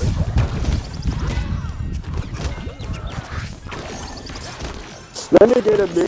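Cartoonish blasts and thumps of a fight game burst rapidly.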